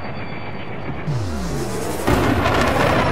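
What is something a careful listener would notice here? A loud whoosh sweeps down in pitch.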